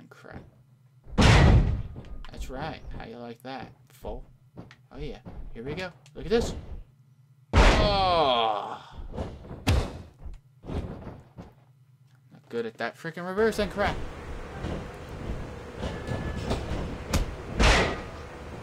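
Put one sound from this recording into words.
A body slams heavily onto a ring mat.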